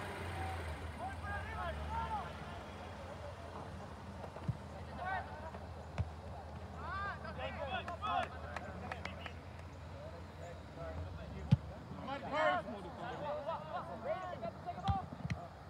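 Young players shout to each other across an open field in the distance.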